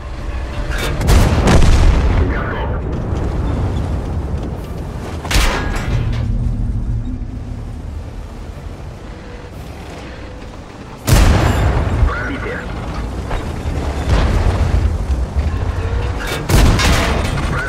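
A tank cannon fires with a loud, booming blast.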